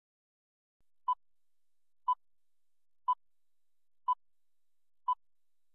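A short, high electronic beep sounds once every second.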